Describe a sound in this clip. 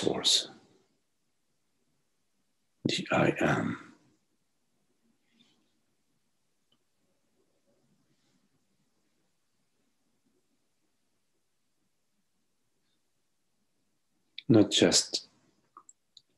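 An older man speaks calmly over an online call, with long pauses.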